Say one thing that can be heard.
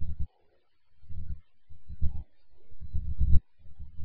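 A girl gulps down a drink.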